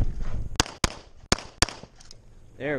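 A pistol fires several rapid shots outdoors.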